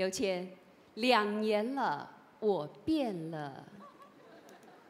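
A young woman speaks brightly into a microphone.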